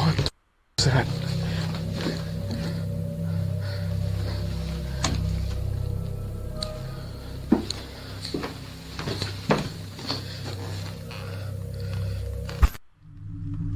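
Footsteps knock on a wooden floor indoors.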